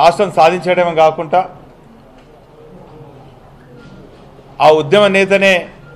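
A middle-aged man speaks firmly into a close microphone, pausing between phrases.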